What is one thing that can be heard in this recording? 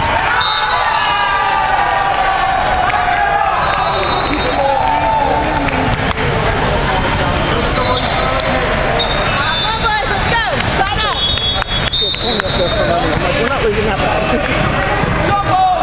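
Many voices of young players and onlookers chatter and call out in a large echoing hall.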